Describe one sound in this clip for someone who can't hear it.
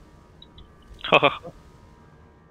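A magic spell bursts with a loud, short whoosh.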